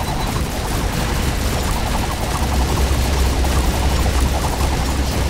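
Rapid game gunfire and explosions crackle on and on.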